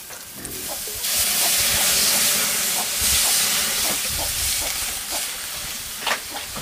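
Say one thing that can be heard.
Water splashes as it is poured from a jug into a hot wok.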